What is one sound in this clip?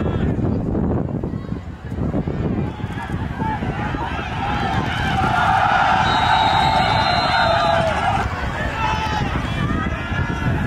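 A crowd of spectators cheers and shouts outdoors, swelling to a loud roar before settling.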